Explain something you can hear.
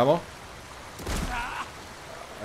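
A body splashes into falling water.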